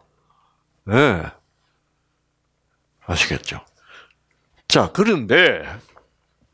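An elderly man speaks with animation in short bursts, heard through a microphone.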